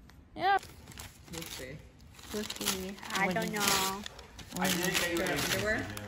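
Wrapping paper crinkles and tears.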